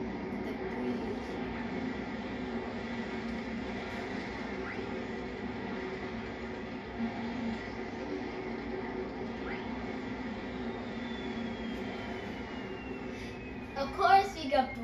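Cheerful game music plays through a television speaker.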